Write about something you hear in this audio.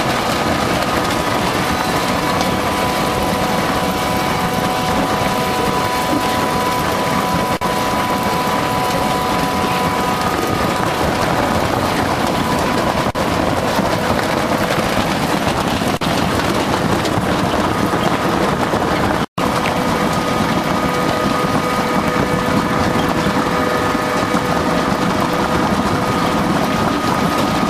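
Potatoes tumble and knock along a conveyor belt.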